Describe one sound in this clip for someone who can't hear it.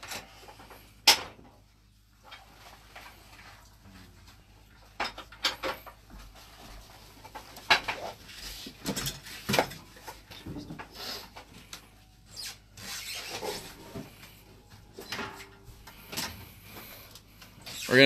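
A metal cable clanks and rattles.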